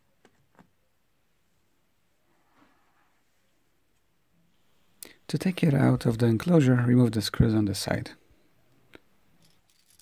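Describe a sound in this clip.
A small metal bracket clicks and rattles as hands turn it.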